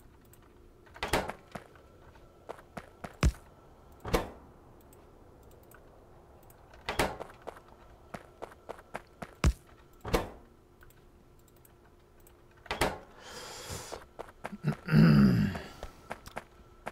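Short clicks and swishes sound as a game menu opens and closes.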